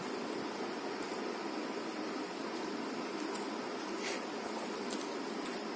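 A woman chews food with soft wet mouth sounds.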